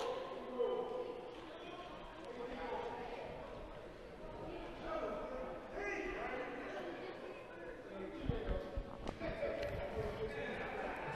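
Young players shout and call out in an echoing hall.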